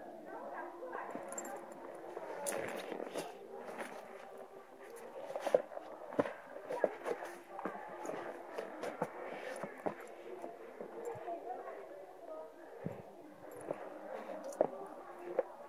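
Footsteps scuff and tap on stone steps close by.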